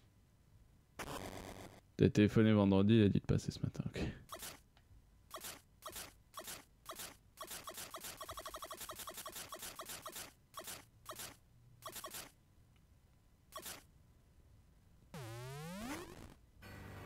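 Electronic game sound effects chirp and bounce in quick bursts.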